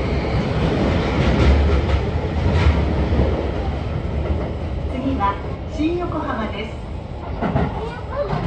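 A train rumbles along the tracks, loud at first and then quieter.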